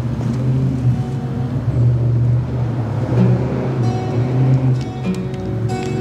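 An electric keyboard plays chords.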